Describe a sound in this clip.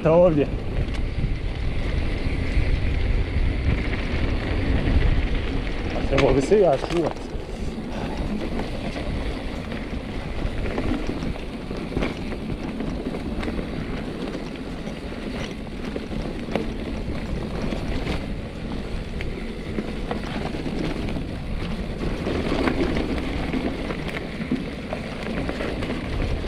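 Wind rumbles past close by.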